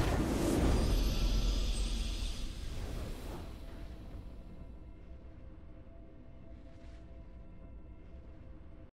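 A triumphant fanfare swells and fades away.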